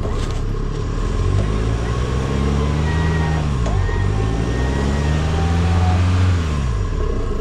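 An engine revs up and down as a vehicle strains in mud.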